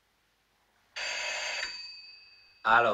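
A telephone rings briefly.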